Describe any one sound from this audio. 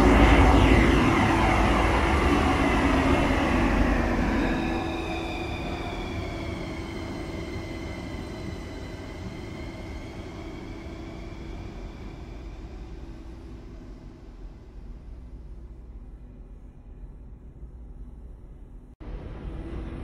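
A train rushes out of a station and its rumble fades into a tunnel.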